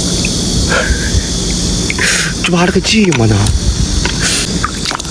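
Shallow water ripples gently over stones.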